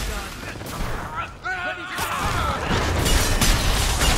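Magic bursts crackle and whoosh.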